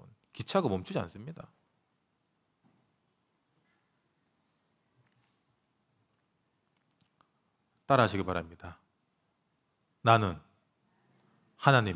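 A young man speaks calmly into a microphone, with long pauses.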